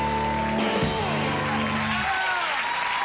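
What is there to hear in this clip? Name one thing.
A rock band plays music loudly and ends on a final chord.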